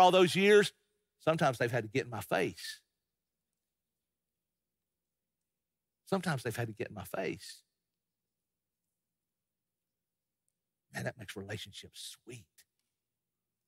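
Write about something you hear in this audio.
An older man speaks in bursts with pauses, heard through a microphone in a large room.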